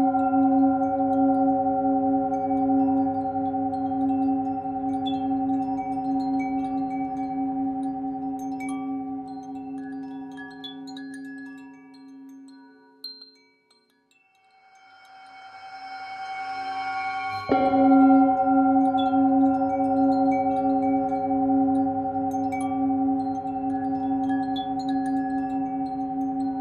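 A metal singing bowl rings with a steady, humming tone as a mallet circles its rim.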